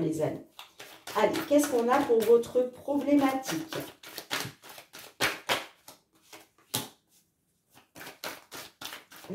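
Cards are shuffled and slapped down onto a wooden surface with soft, quick clicks.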